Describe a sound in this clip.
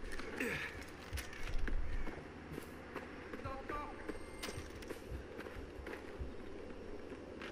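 Footsteps crunch and rustle through grass and brush.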